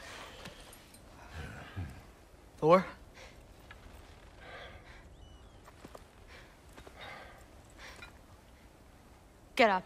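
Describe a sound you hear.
A man speaks gruffly, close by.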